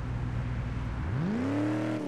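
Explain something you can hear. A car engine revs up sharply, rising in pitch.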